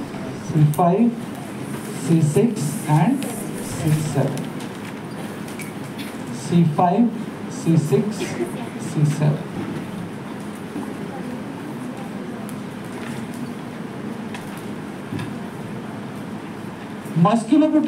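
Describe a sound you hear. A man lectures through a clip-on microphone, speaking calmly in short bursts.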